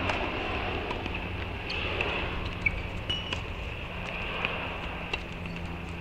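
Sneakers thud and squeak on a hard court as a player runs close by.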